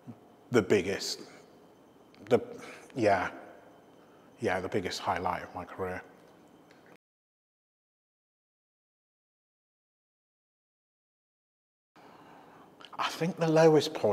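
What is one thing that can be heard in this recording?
A man speaks calmly and close to a microphone, with pauses.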